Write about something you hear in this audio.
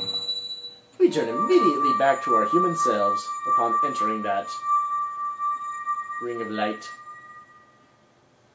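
A magical chime rings and shimmers.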